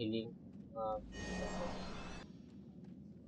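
A magic spell bursts with a shimmering whoosh.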